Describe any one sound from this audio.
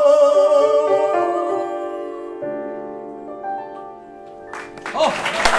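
A piano plays a closing melody.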